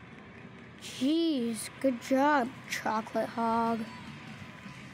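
A young boy speaks with animation.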